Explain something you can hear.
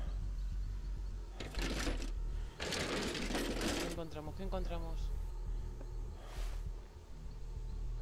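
Someone rummages through a chest, with items rattling and clinking.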